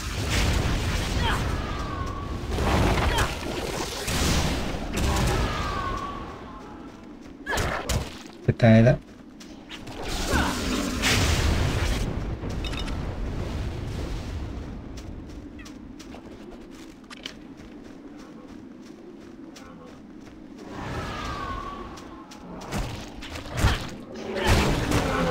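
Magic spells crackle and whoosh in bursts.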